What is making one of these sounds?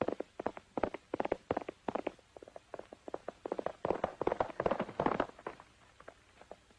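A horse gallops away, its hoofbeats fading.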